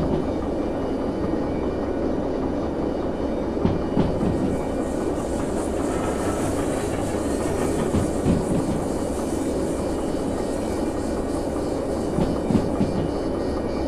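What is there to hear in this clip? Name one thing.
Train wheels clatter and knock over rail joints.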